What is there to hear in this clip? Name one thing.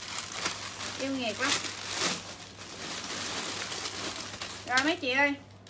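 Clothes and plastic wrapping rustle as they are handled.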